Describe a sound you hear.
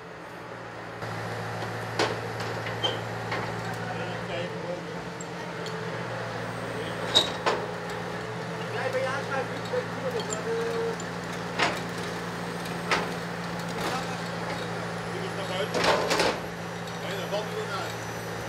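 A crane engine hums steadily.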